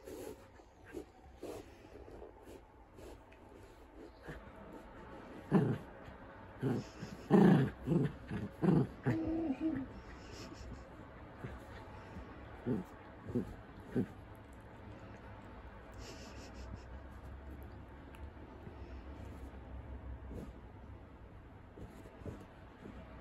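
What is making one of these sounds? A small dog sniffs and snuffles close by.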